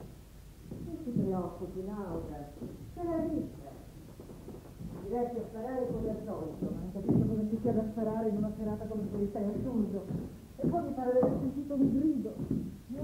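A woman speaks tensely nearby.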